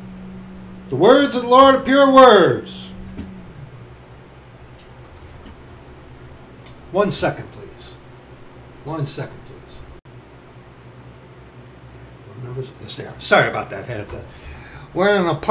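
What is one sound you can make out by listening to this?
A middle-aged man speaks close by, in short bursts with pauses.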